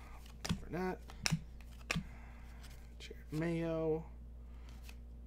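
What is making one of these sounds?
Trading cards flick and slide against each other.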